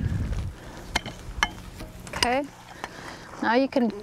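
Stones knock together as they are set in place.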